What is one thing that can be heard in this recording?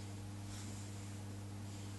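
Hands rub through a puppy's fur.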